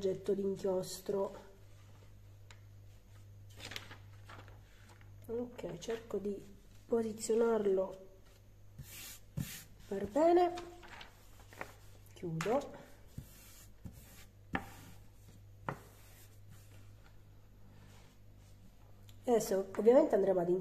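Sheets of paper rustle and crinkle.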